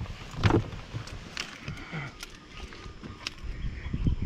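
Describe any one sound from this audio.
A car door latch clicks and the door swings open.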